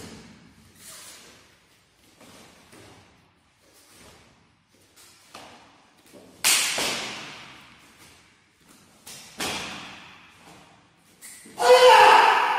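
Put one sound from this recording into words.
A martial arts uniform snaps sharply with each quick strike.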